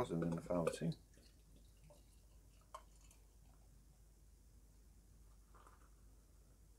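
Beer pours from a bottle into a glass.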